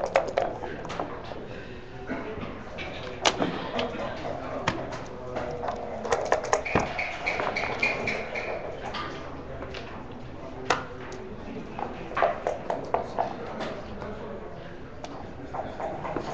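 Game pieces click and clack against a wooden board.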